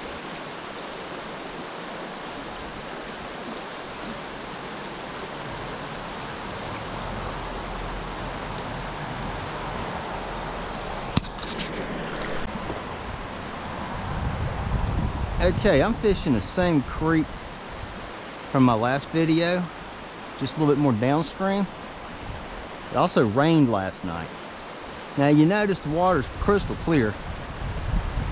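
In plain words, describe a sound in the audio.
A shallow stream babbles and trickles over rocks.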